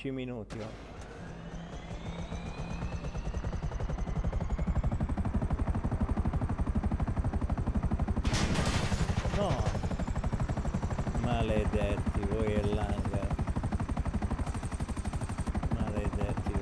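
A helicopter engine starts up with a rising whine.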